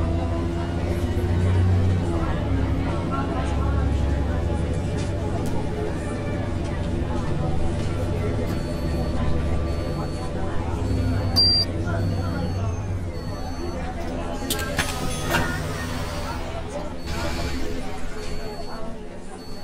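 A bus engine hums and drones steadily.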